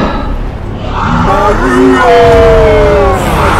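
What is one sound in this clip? A creature lets out a long, wailing howl.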